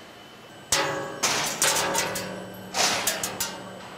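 A thin metal sheet rattles as a hand lifts it.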